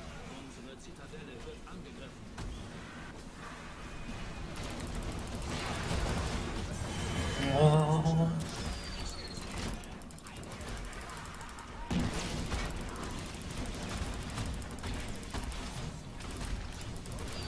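Game spells crackle and blast in quick bursts.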